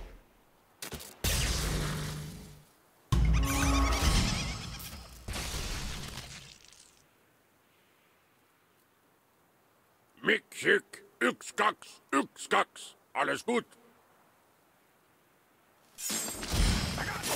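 Magic spells burst and whoosh in a fight.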